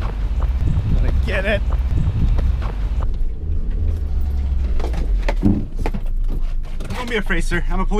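A car engine rumbles while driving.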